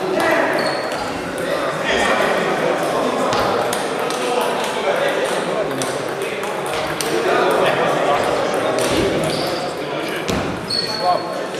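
Table tennis balls click sharply on paddles and tables in an echoing hall.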